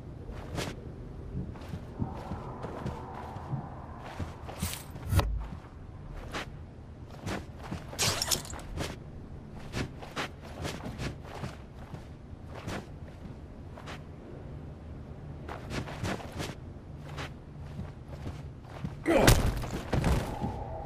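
Footsteps thud softly on carpet.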